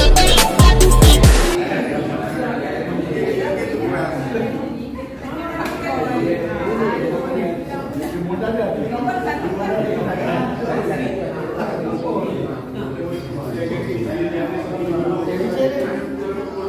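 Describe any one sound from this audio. Many men and women chat and talk over one another in a busy room.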